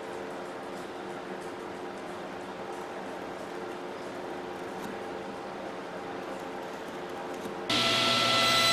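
A knife scratches lightly across wood.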